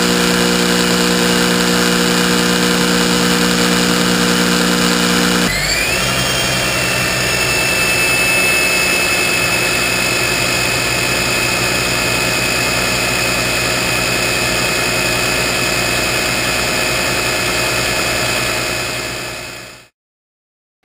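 An engine idles fast with a steady hum and whine close by.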